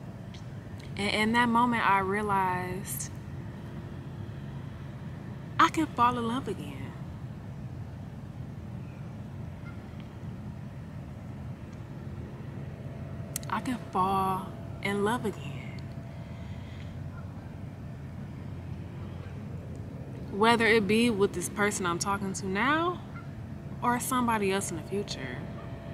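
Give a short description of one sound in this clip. A young woman talks close to the microphone in short bursts, with pauses between them.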